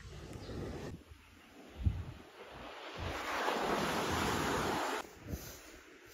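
Waves break and wash up on a shore.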